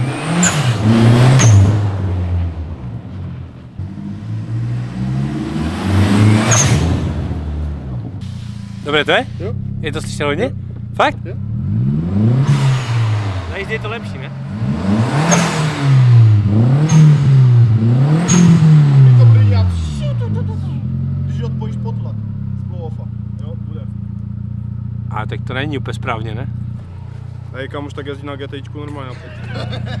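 A car engine revs hard again and again, then settles to a steady idle.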